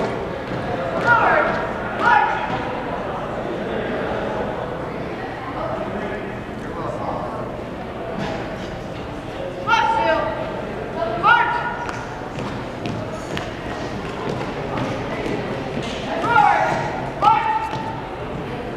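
A man shouts drawn-out marching commands in a large echoing hall.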